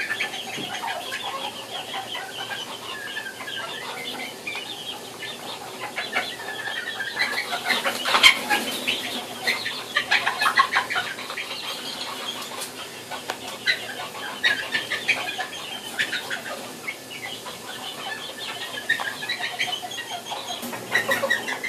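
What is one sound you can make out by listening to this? A young chicken chirps and peeps repeatedly, close by.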